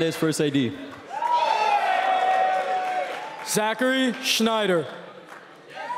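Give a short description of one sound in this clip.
A young man speaks loudly through a microphone in a large echoing hall.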